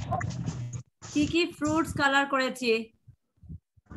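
A young girl speaks over an online call.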